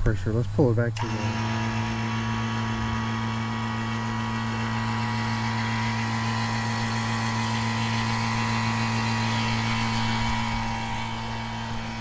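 A vacuum pump motor starts and hums steadily.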